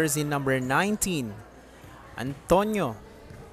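A volleyball bounces on a hard indoor floor.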